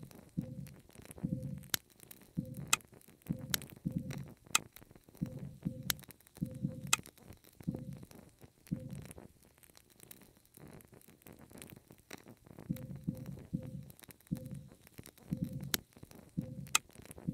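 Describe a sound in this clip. Wooden books knock softly as they are stacked, one after another.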